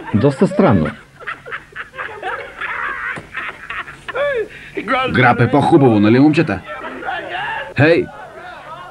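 Men laugh heartily nearby.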